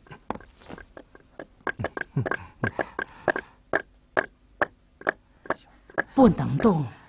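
Footsteps tap quickly on a wooden floor.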